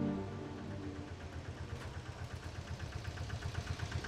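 A van engine hums as the van drives slowly closer.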